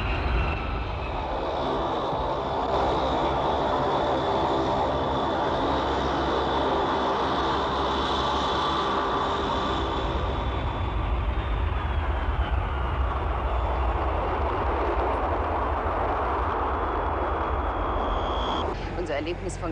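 Jet engines roar loudly.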